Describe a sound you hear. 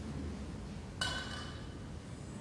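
A glass or metal vessel clinks sharply on a table.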